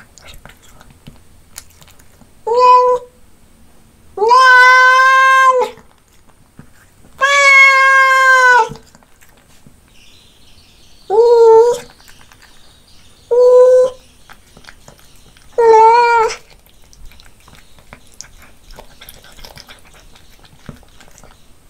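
A cat chews and crunches on food.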